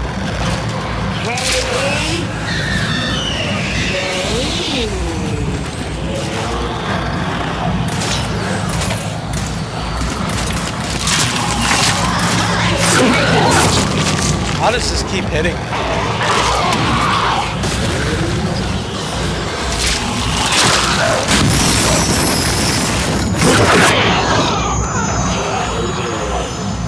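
A loud rumbling drone fills the background.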